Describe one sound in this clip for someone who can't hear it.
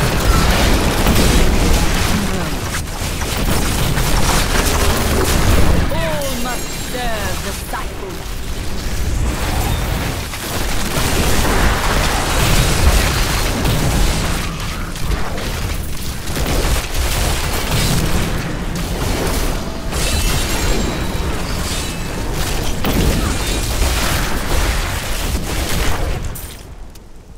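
Spells blast and crackle in a dense, noisy battle.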